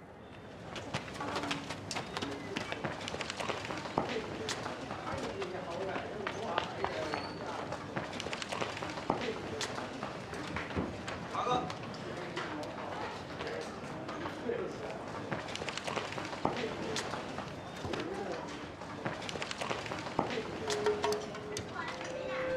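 Men and women chatter nearby in a busy street.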